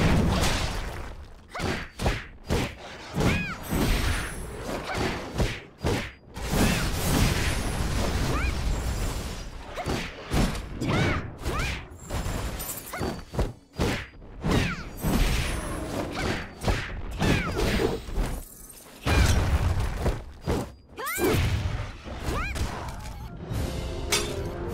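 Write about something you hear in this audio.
Blades clash and strike with sharp metallic hits in a fast fight.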